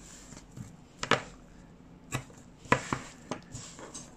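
Tape peels off a roll with a short rasp.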